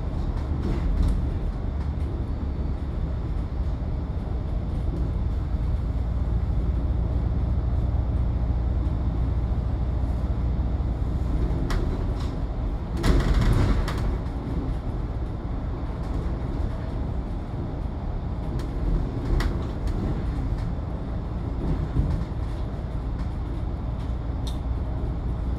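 The bus body rattles and clicks now and then.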